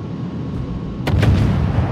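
Heavy naval guns fire with loud booming blasts.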